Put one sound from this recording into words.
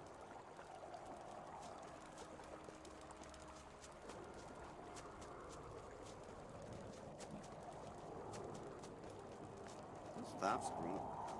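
Footsteps fall on a dirt path.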